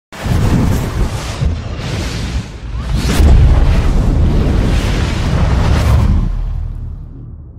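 Fiery explosions roar and rumble.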